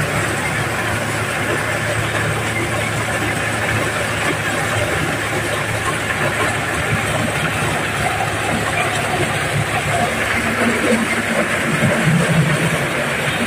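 Grain pours and rattles out of a threshing machine.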